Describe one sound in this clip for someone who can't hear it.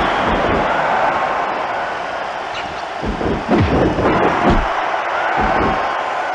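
Heavy bodies thud against a wrestling mat.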